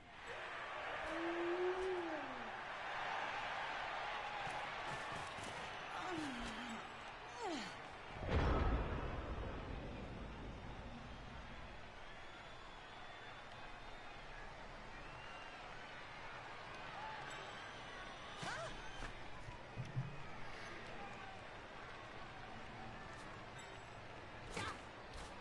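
A crowd roars in a large stadium.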